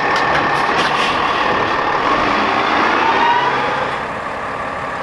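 A garbage truck engine roars as the truck drives past.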